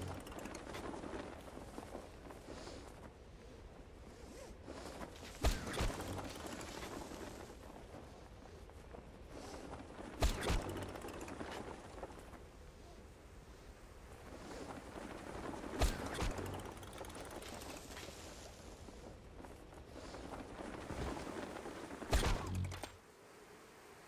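Wind rushes steadily past a gliding parachute, swelling and fading.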